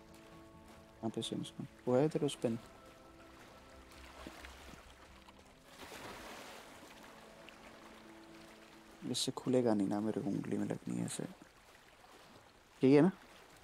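Water splashes softly as a swimmer paddles through a lake.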